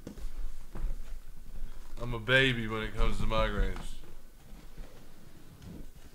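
Cardboard boxes knock and slide as they are handled.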